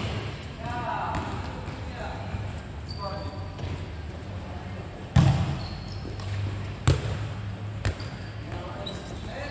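Young players shout and call out across the court.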